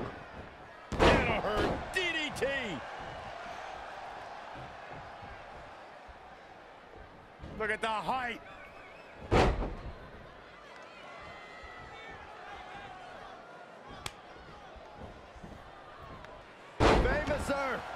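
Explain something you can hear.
A body slams hard onto a wrestling mat with a heavy thud.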